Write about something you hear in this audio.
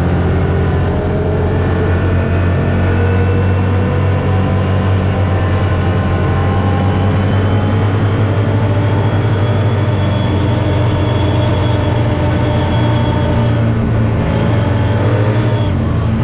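Wind rushes past an open vehicle.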